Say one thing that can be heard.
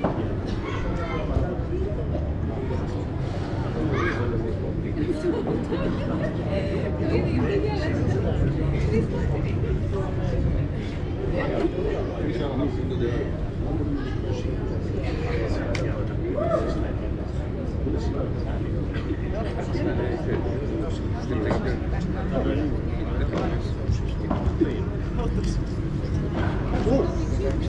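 Padel rackets hit a ball with sharp pops.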